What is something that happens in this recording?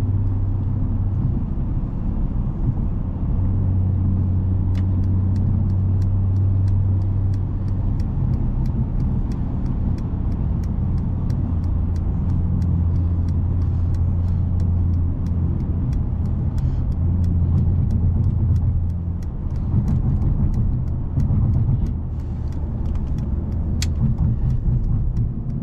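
A car engine drones at highway speed, heard from inside the cabin.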